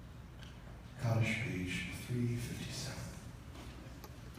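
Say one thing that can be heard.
A man speaks into a microphone over loudspeakers in a large echoing hall.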